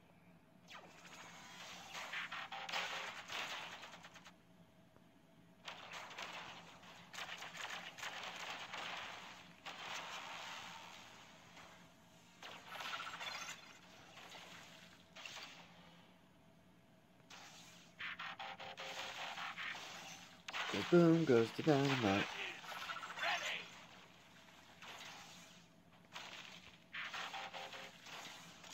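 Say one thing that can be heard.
Explosions and laser blasts from a video game boom and crackle in bursts.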